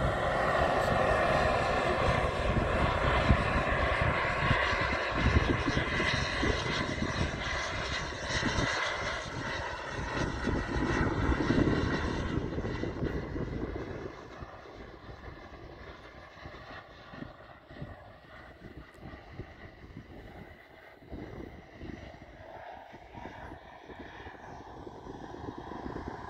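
A small model plane engine buzzes overhead and slowly fades into the distance.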